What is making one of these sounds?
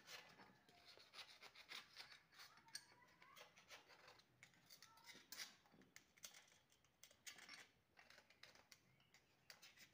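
Hands scrape and knock on a metal block.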